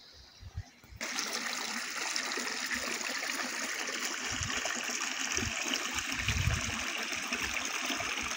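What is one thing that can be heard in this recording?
A small stream of water rushes and splashes over stones close by.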